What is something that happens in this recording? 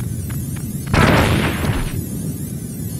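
A grenade explodes with a loud boom.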